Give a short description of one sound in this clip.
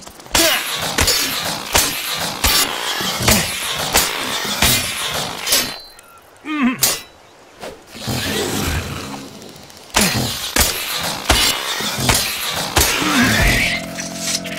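A blade chops repeatedly into a hard shell.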